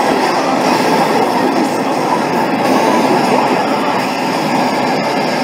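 An arcade game blares loud, distorted battle music and effects through its speakers.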